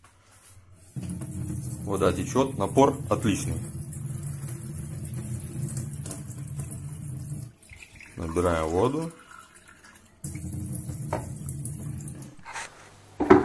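Water streams from a tap into a metal sink.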